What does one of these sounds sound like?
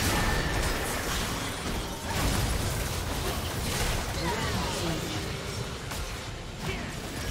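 Game spell effects crackle and burst in a chaotic fight.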